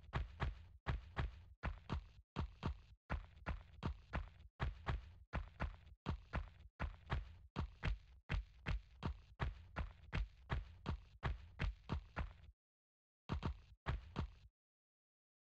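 Quick footsteps run on a stone floor.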